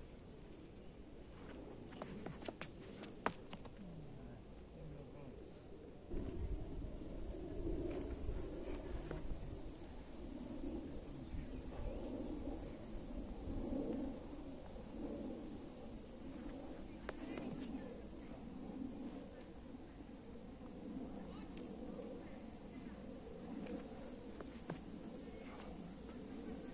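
Shoes scuff and twist on a concrete surface.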